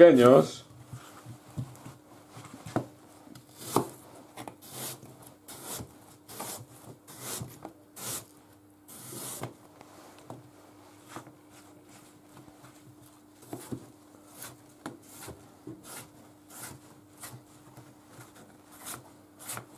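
A knife taps on a plastic cutting board.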